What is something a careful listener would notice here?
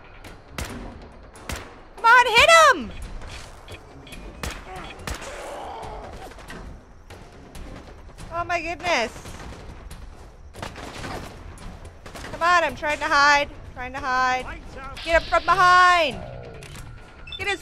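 Gunfire cracks in rapid, sharp bursts.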